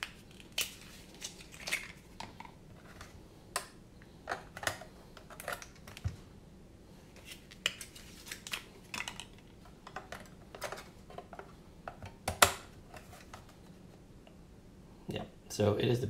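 Hard plastic clicks and knocks as a handheld controller is handled and its battery fitted.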